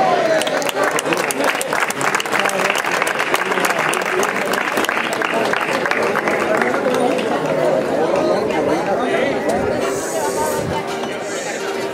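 An acoustic guitar is strummed and plucked briskly.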